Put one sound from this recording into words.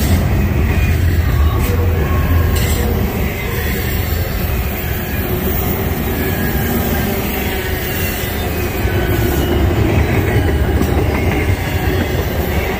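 A long freight train rumbles steadily past nearby, its wheels clattering on the rails.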